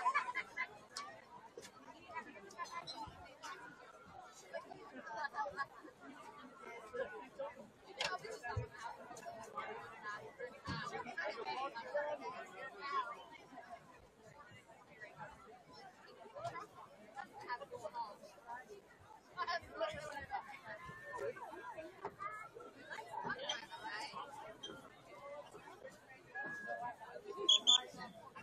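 Young people chatter and call out nearby outdoors.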